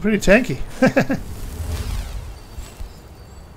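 A magic blast bursts with a rushing whoosh.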